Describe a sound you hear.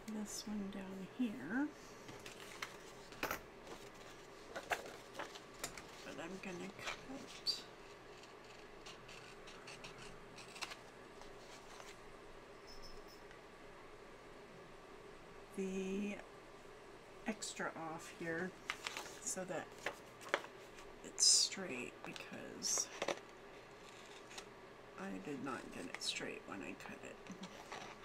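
Paper rustles and crinkles as sheets are handled.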